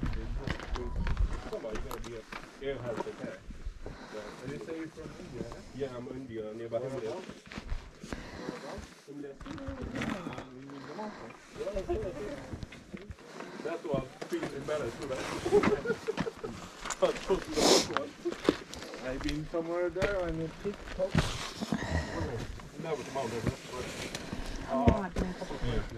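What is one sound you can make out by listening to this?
Boots scrape on rock.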